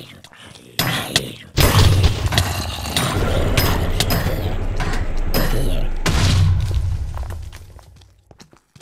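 Lava bubbles and roars.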